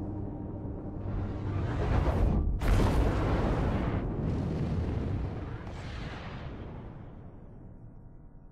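A spaceship's engines roar loudly as it rushes past, then fade away.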